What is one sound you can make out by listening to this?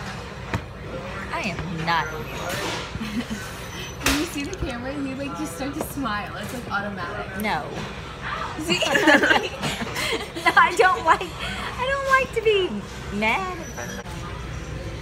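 A young woman talks and giggles close by.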